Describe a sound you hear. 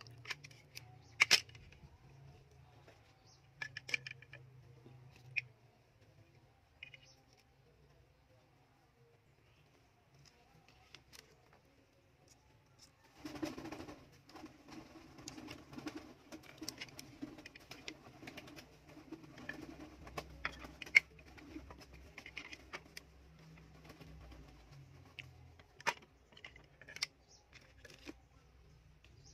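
Hard plastic parts knock and click together close by.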